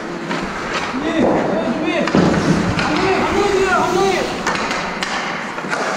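Men call out in a large echoing rink.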